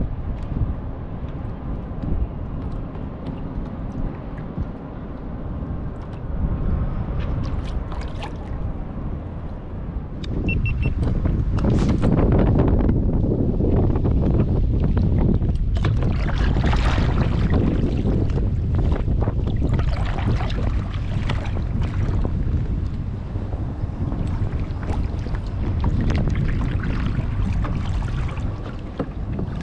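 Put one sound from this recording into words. Small waves lap and splash against a kayak hull.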